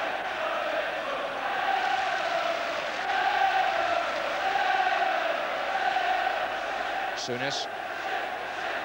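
A large stadium crowd chants and roars loudly throughout.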